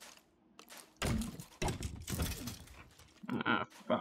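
A creature is struck and bursts into a puff of smoke.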